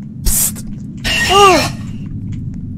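A creature lets out a loud, shrill screech that falls in pitch.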